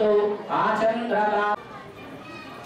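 A man chants loudly through a microphone and loudspeaker.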